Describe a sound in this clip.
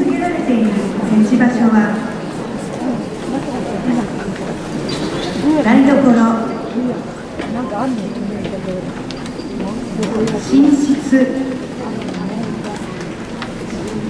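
A woman speaks with animation through a loudspeaker in an echoing hall.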